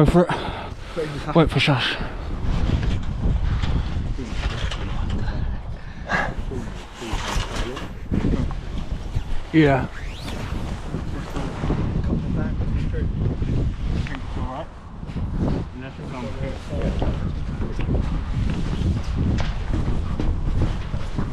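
Wind blusters loudly across a microphone outdoors.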